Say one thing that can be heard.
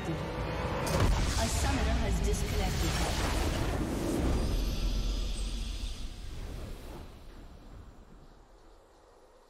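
A triumphant game victory fanfare plays and fades away.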